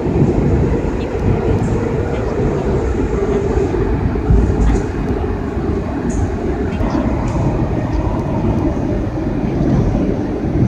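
A subway train rumbles loudly through a tunnel.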